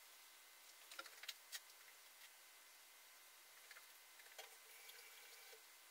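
Water bubbles and simmers softly in a glass beaker.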